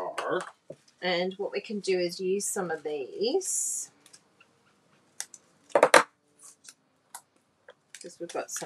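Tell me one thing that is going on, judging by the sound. A woman talks calmly and closely into a microphone.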